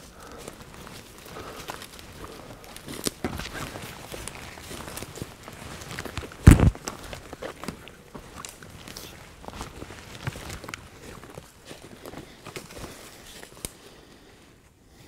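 Footsteps crunch through dry leaves and twigs on the ground.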